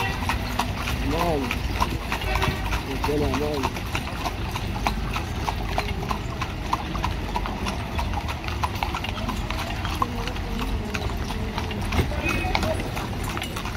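A horse-drawn carriage rattles along.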